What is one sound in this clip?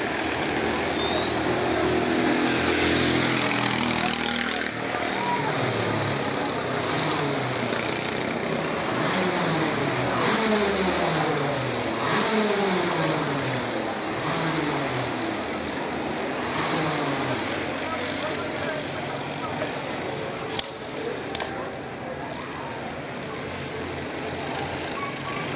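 Kart engines buzz loudly and rise and fall in pitch as they race past.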